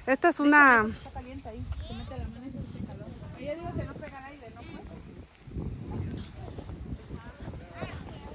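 Several children talk and call out a little farther off.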